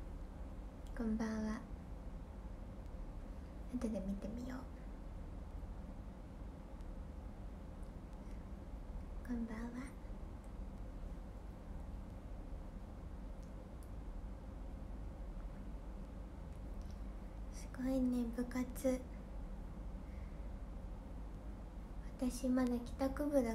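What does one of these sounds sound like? A young woman speaks softly in short bursts close to a microphone, with long pauses.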